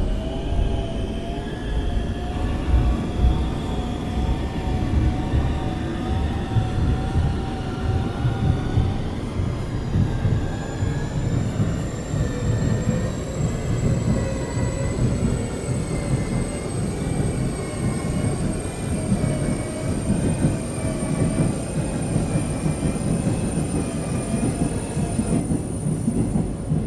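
A train's electric motors whine, shifting in pitch.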